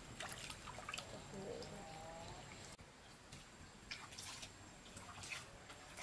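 Water splashes and drips in a basin as feet are washed.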